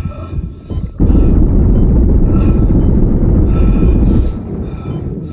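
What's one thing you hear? A creature screeches loudly.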